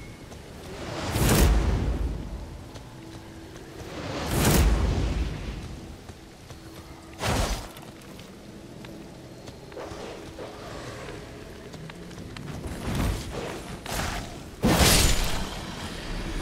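A sword swings and strikes with heavy whooshing blows.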